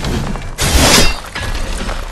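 A sword slashes with a loud metallic clash.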